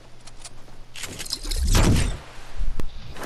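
A loud rushing whoosh bursts and fades.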